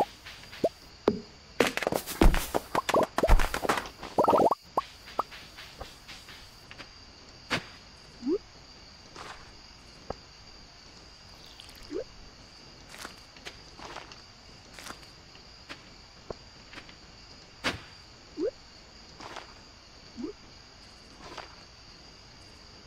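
Short, soft game sound effects pop and click now and then.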